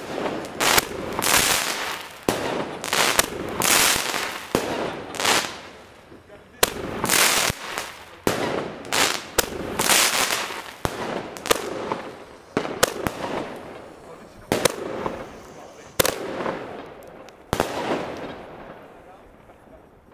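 Fireworks fizz and hiss overhead.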